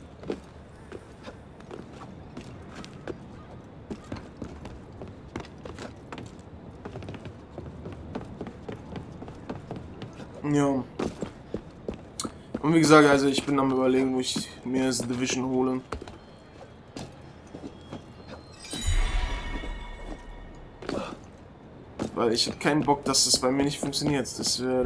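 Footsteps patter quickly over roof tiles.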